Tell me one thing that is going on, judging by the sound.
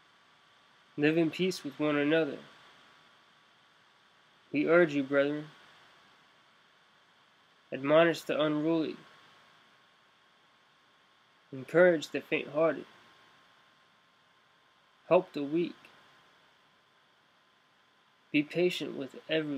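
A young man speaks calmly into a nearby microphone in short phrases with pauses.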